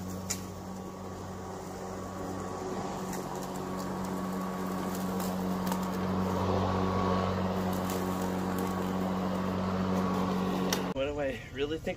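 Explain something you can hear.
An electric lawn mower hums steadily as it cuts grass.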